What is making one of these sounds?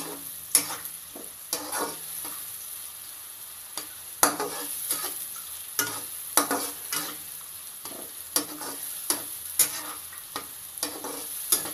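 A spatula scrapes and knocks against a nonstick frying pan while stirring crumbly food.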